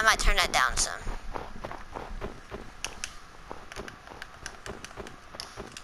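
Footsteps crunch on snow in a video game.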